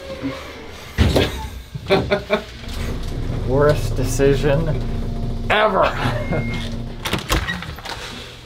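An elevator hums steadily in a small, echoing space.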